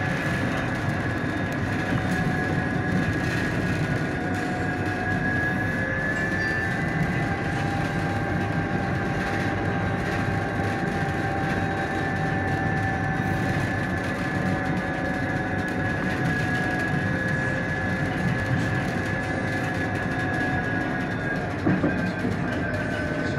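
Tyres roll steadily on pavement.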